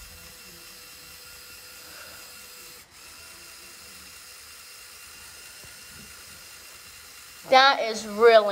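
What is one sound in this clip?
A small electric motor whirs quietly and steadily.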